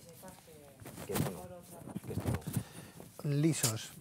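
Fabric rustles against a clip-on microphone.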